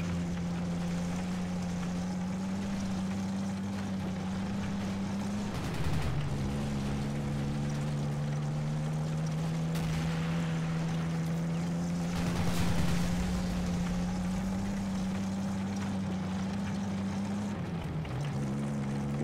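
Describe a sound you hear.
A tank engine rumbles and drones steadily as the tank drives.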